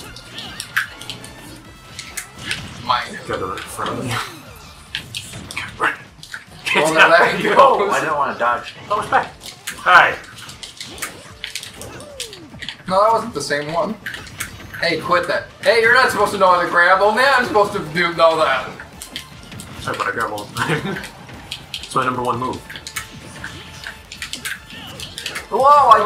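Video game fighters land punches and blasts with sharp hits and crackles.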